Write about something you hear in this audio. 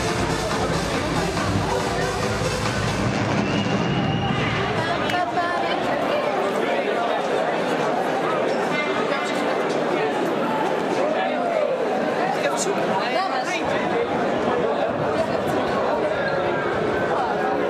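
A crowd chatters loudly in a large echoing hall.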